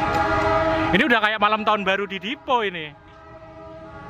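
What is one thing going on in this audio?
A train horn blares loudly and wavers.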